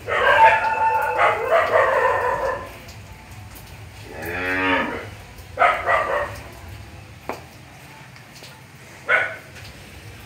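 Calves moo and bleat loudly nearby.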